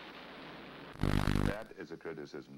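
Television static hisses in a short burst.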